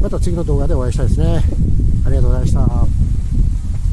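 A middle-aged man speaks close to the microphone with animation.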